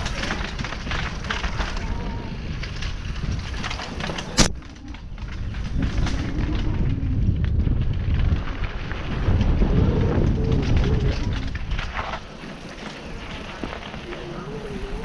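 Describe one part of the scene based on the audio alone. Tyres crunch and rattle over dirt and stones.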